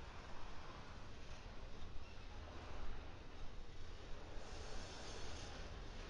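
A freight train rumbles and rattles steadily past close by.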